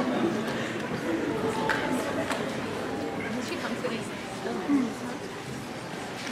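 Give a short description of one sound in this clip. Feet shuffle and tap on a stage floor.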